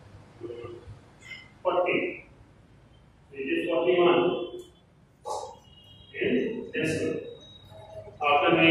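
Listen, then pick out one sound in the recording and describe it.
A man speaks clearly and steadily nearby.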